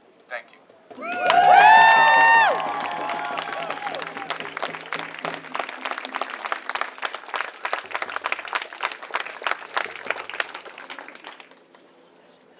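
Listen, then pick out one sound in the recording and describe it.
A small crowd cheers and claps.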